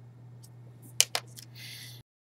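A marker taps down on paper.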